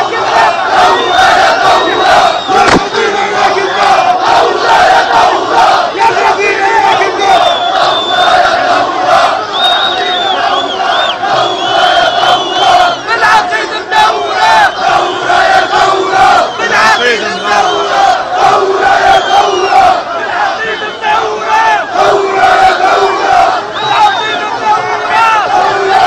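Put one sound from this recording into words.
Whistles blow shrilly among a crowd.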